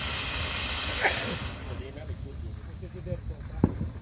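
A firework fountain hisses and sprays sparks, then dies down.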